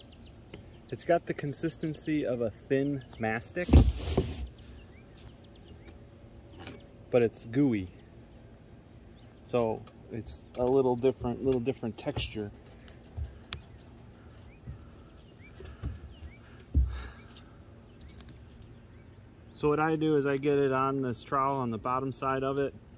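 A man talks calmly, close to a microphone.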